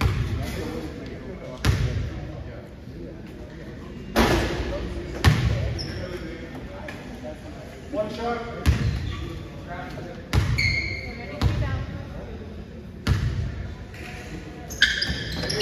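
A basketball bounces on a hard floor, echoing in a large gym.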